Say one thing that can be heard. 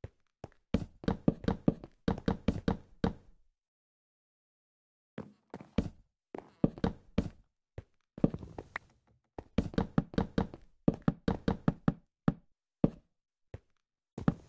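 Wooden blocks thud softly as they are placed one after another.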